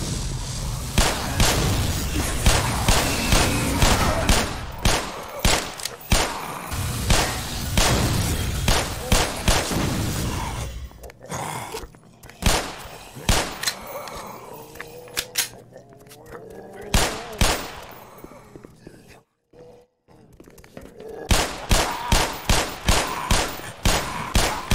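A pistol fires in quick, loud shots.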